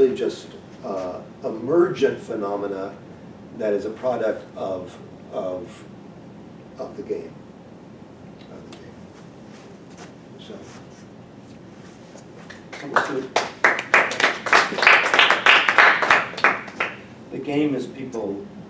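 An older man lectures calmly, close by.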